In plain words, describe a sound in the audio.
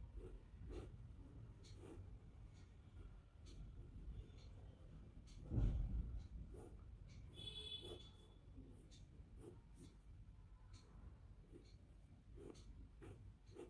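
A pen scratches and taps lightly on paper.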